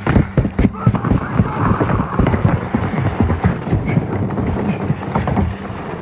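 Quick footsteps thud on a hard floor.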